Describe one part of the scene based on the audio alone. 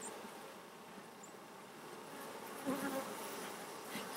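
A bee smoker puffs air with a short whoosh.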